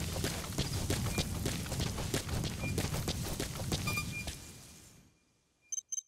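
Footsteps crunch through grass and dirt at a run.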